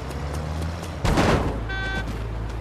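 A heavy thud sounds as a car strikes a man.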